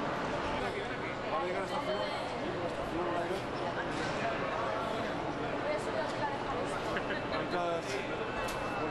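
Several adults talk and chatter nearby in an echoing hall.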